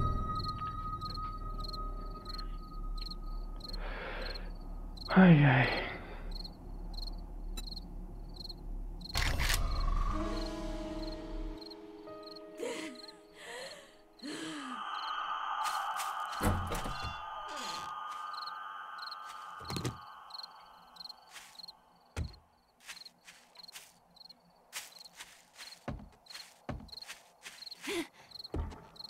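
A young man talks.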